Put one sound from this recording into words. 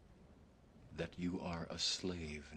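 A man speaks calmly and close.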